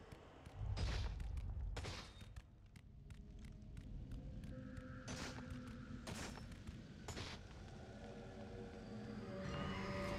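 Heavy footsteps thud on stone stairs.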